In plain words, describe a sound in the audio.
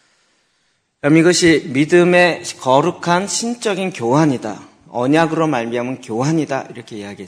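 A middle-aged man speaks steadily into a microphone, as if preaching.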